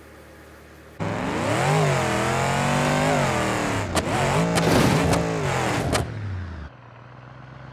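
An old car engine roars and revs.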